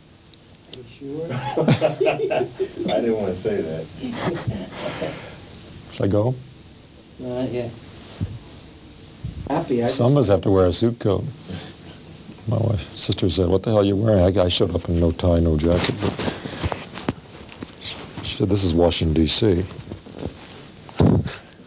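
A middle-aged man speaks calmly into a microphone close by.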